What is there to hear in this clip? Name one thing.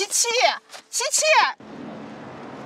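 A young woman shouts angrily close by.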